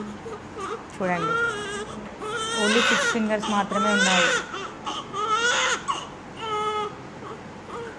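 A baby cries loudly nearby in bursts.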